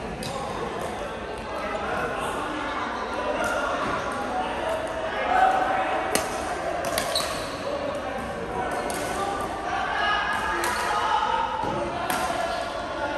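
Shuttlecocks are hit with sharp pops of rackets.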